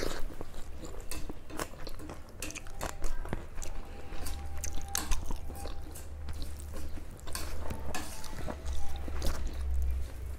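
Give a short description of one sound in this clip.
Fingers squelch and mix wet food on a plate close by.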